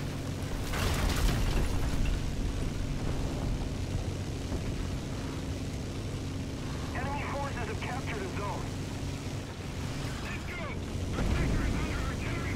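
Tank tracks clank over the ground.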